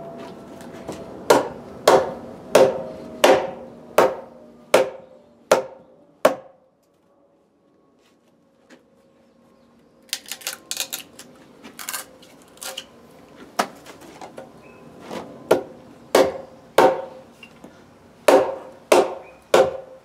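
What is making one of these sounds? A wooden mallet knocks sharply on a chisel in wood, again and again.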